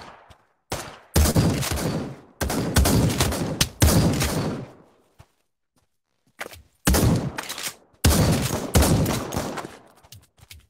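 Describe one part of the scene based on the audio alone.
A rifle fires in loud rapid bursts.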